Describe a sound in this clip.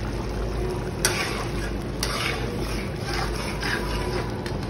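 A metal spatula scrapes and stirs against a pan.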